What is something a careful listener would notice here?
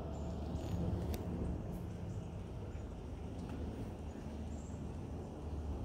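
Leaves rustle in a light breeze outdoors.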